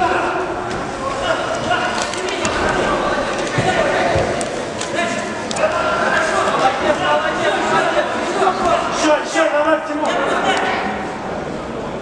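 Boxing gloves thud against a body in quick punches.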